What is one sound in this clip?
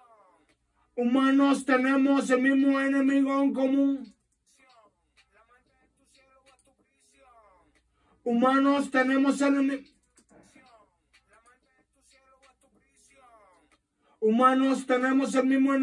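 A young man sings close to a microphone in short bursts.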